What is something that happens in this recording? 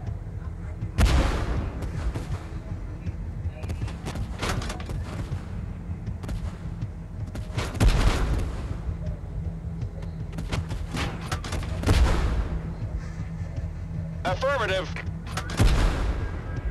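Tank cannons fire with loud booms.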